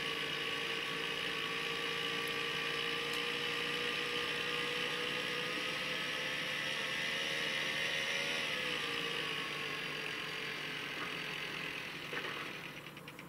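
A phone speaker plays game sounds with a steady humming drone.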